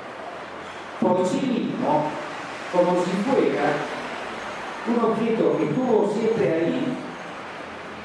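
An elderly man speaks slowly into a microphone, heard through loudspeakers in a large room.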